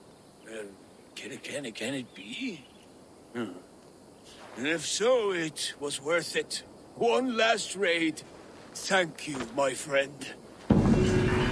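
A man speaks loudly with animation, close by.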